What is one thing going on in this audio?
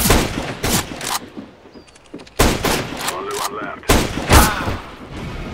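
A sniper rifle fires loud, sharp shots.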